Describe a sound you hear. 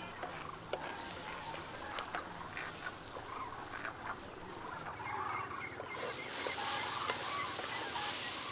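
A wooden spoon scrapes and stirs vegetables in a pan.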